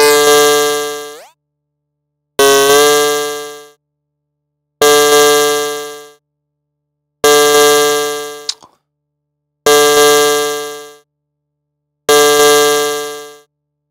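A synthesizer plays a bright buzzing note over and over, each fading out after about a second.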